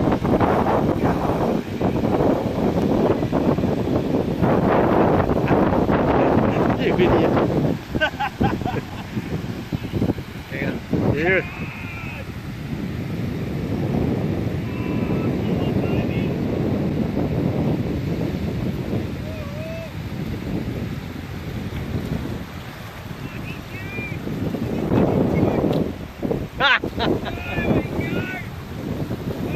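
Small surf breaks and washes onto a sandy beach.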